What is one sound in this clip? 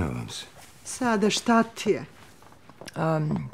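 A middle-aged woman asks a worried question nearby.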